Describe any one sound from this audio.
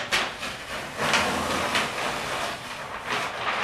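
Large sheets of paper rustle as they are flipped over.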